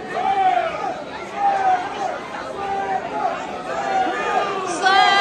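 A crowd chants loudly in rhythm in a large echoing hall.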